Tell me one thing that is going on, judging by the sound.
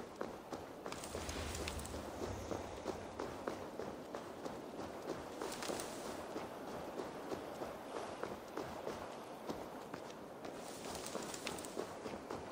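Leafy bushes rustle as someone pushes through them.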